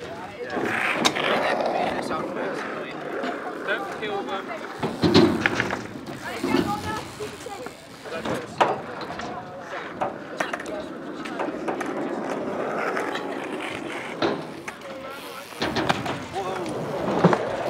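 Scooter wheels roll and rattle on concrete.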